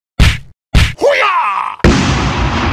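A man speaks in a comic, sing-song voice.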